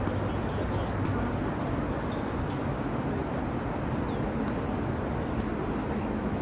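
Tennis balls are struck with rackets, with sharp pops.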